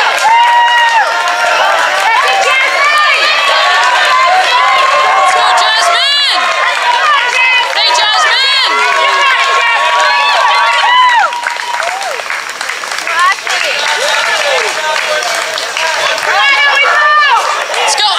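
A crowd of young spectators cheers and shouts loudly outdoors.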